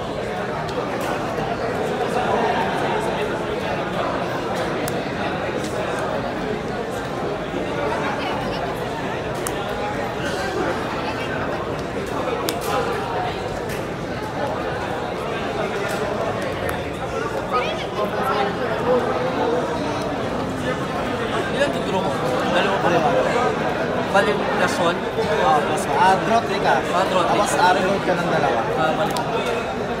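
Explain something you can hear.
Playing cards tap and slide softly on a play mat.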